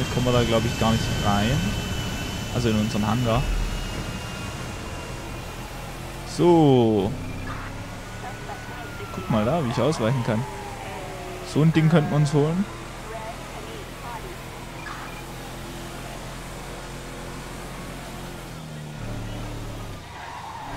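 A truck engine hums steadily as the truck drives.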